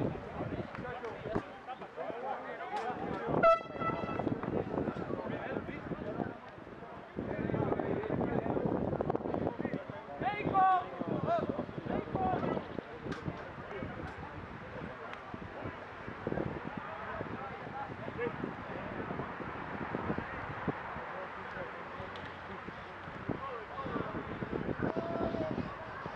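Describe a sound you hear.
Men shout and call out across an open field outdoors.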